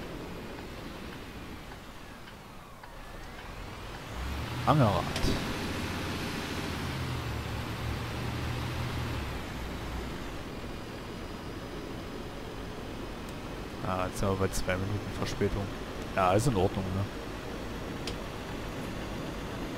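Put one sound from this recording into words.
A diesel city bus engine hums as the bus drives along a road.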